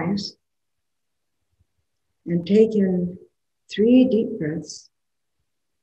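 An older woman speaks slowly and calmly into a microphone, in short phrases with long pauses.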